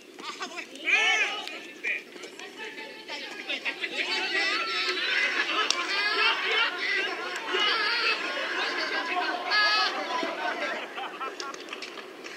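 Young men shout and call out loudly outdoors.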